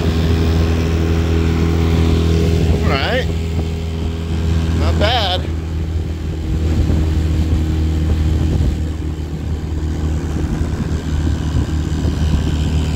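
An outboard motor drones steadily at high speed.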